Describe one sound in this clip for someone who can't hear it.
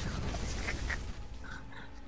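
Shattering crystals explode.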